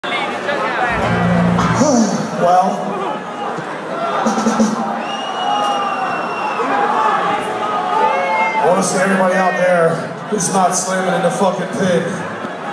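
A singer sings into a microphone over loudspeakers in a large echoing hall.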